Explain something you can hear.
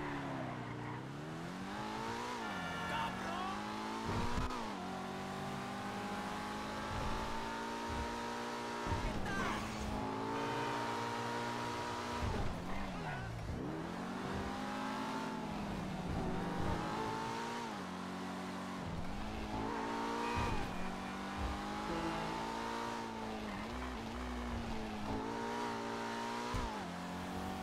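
A sports car engine revs high and drops again and again as the gears shift.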